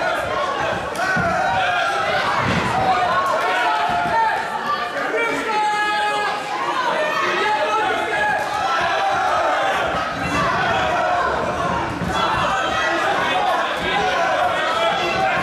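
Punches and kicks thud against bodies and pads.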